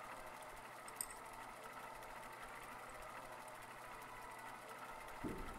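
A mechanical game wheel whirs and ticks steadily.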